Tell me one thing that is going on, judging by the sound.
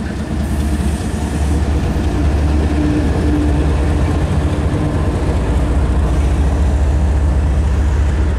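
Freight cars clatter and rumble over the rails.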